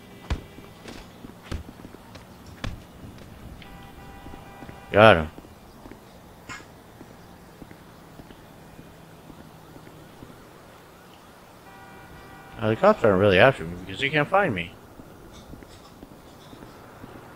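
Footsteps walk across hard concrete.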